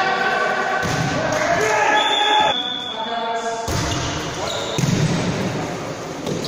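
A volleyball is struck with a slap.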